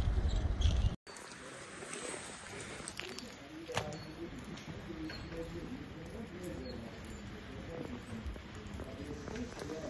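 Hail patters on the ground.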